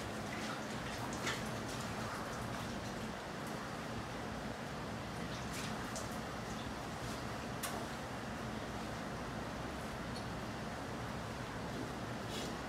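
Milk squirts into a metal pail in short spurts.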